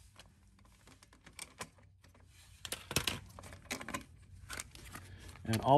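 Plastic engine parts click and knock as they are handled.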